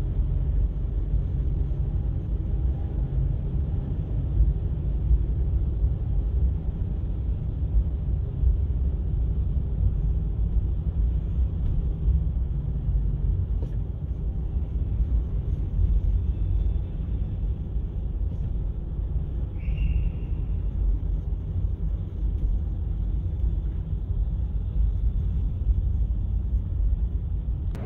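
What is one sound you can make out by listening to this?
A vehicle engine rumbles low and steady.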